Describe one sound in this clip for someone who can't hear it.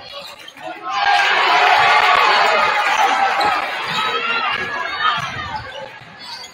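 A crowd cheers loudly in an echoing gym.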